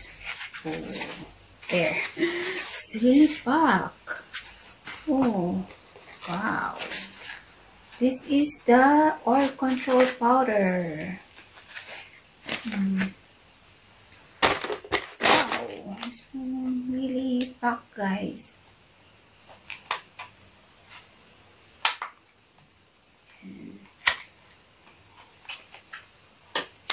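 Cardboard packaging rustles and taps in hands.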